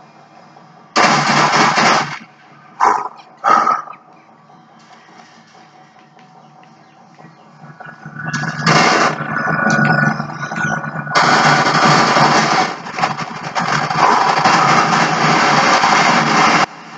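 Gunfire and explosions from a video game play loudly through a television's speakers.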